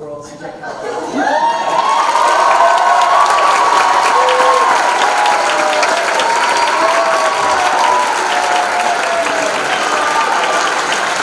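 A crowd of young people cheers and screams loudly.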